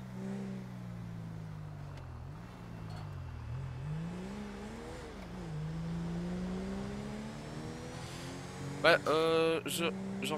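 A car engine hums and revs up and down as the car drives along.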